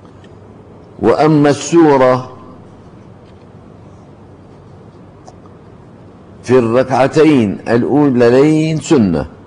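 An elderly man reads aloud slowly into a microphone, with long pauses.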